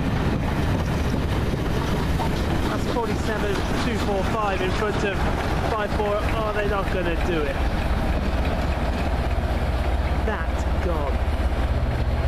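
A diesel locomotive engine throbs loudly as it passes.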